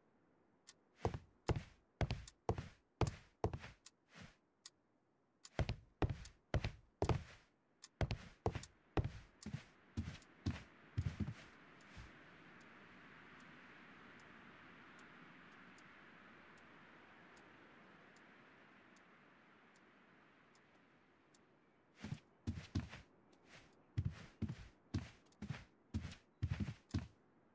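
Footsteps tap across a hard wooden floor.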